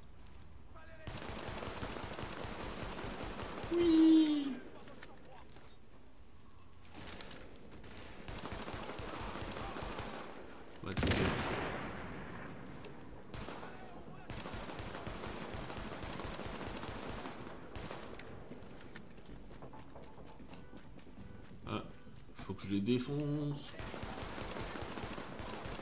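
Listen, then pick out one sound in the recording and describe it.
Rifles fire in rapid, repeated bursts.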